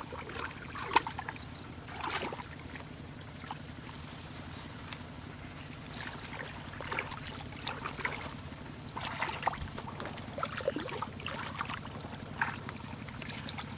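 Hands splash and scoop in shallow muddy water.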